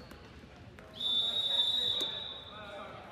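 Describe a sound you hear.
A whistle blows shrilly.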